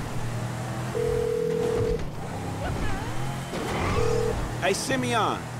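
A phone call tone beeps.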